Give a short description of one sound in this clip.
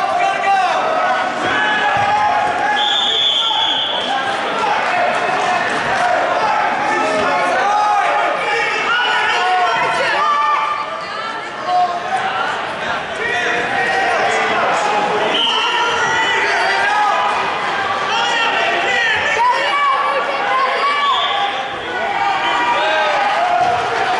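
Wrestlers thump and scuffle on a mat.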